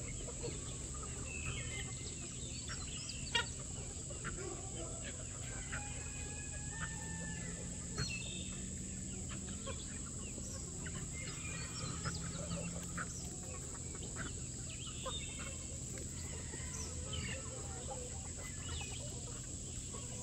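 Many chickens cluck and chatter nearby outdoors.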